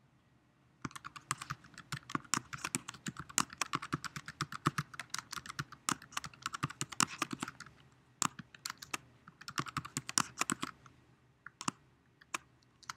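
Keys on a keyboard click in quick bursts of typing.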